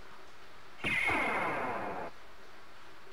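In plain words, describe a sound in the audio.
A shimmering magical chime rings out and fades.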